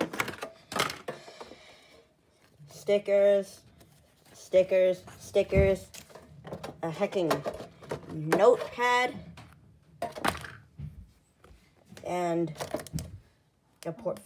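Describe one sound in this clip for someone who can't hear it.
A metal tin rattles as it is handled.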